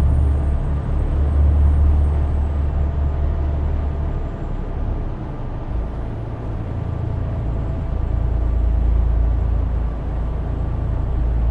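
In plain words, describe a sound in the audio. Tyres roll over a road with a steady hiss.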